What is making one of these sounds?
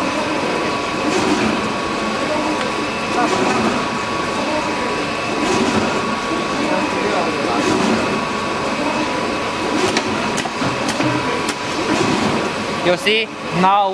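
A paper-feeding machine whirs and rattles steadily.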